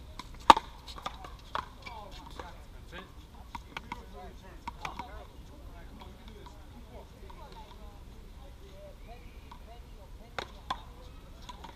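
A ball smacks sharply against a paddle.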